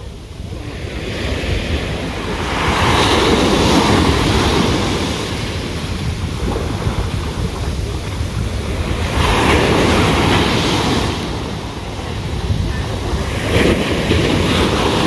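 Sea waves wash onto the shore in slow surges.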